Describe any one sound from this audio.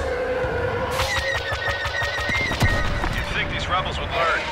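Laser blasts fire in rapid bursts.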